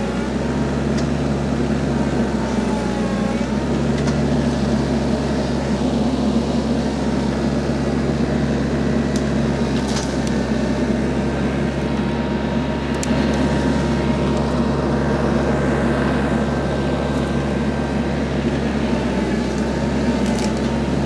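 Twigs and branches snap and crack.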